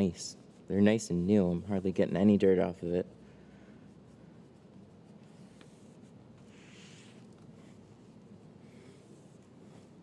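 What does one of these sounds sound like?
A cloth rubs softly across a car window.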